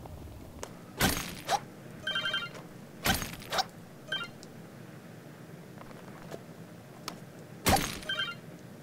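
A hammer strikes rock with sharp, ringing blows.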